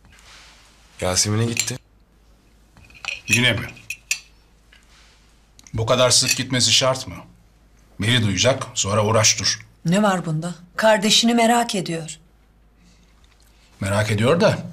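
A middle-aged man speaks tensely nearby.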